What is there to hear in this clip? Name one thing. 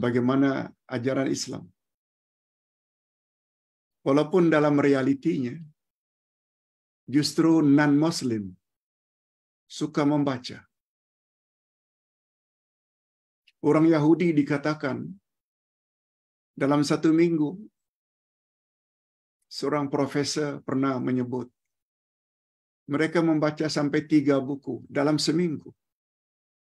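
An elderly man speaks calmly in short phrases with pauses, heard through an online call.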